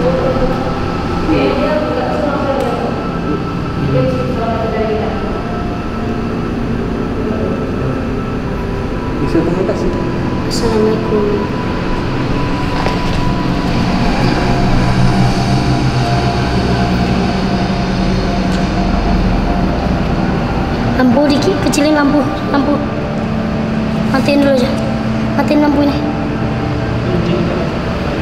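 A young man speaks in a low voice close by.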